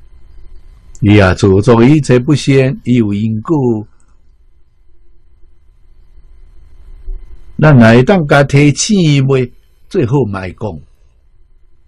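An elderly man speaks calmly and close into a microphone, in short phrases with pauses.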